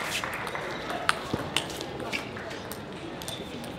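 A table tennis ball clicks off paddles and the table in a rally.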